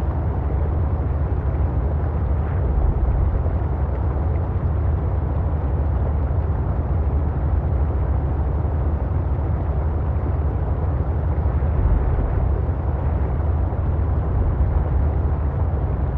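Water rushes and bubbles around a moving vehicle.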